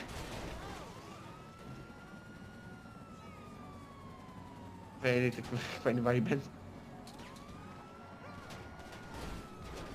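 A police siren wails with a slow rise and fall.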